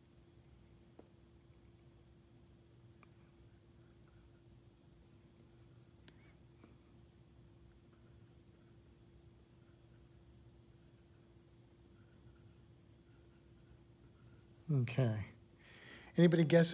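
A stylus taps and glides softly on a glass tablet.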